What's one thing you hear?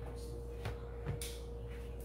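Dough is pressed flat onto a pan with a soft slap.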